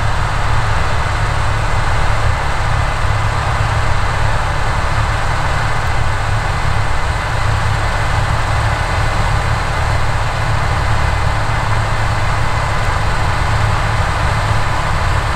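A combine harvester's engine drones steadily.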